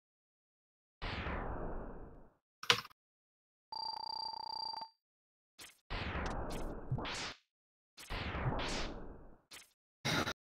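Electronic game blasts whoosh in short bursts.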